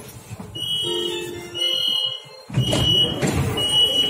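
Sliding train doors close with a thud.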